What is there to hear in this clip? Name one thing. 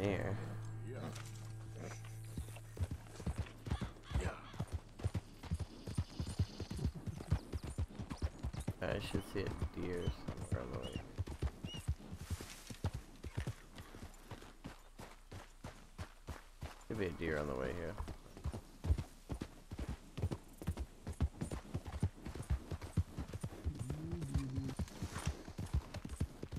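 Horse hooves pound steadily at a gallop.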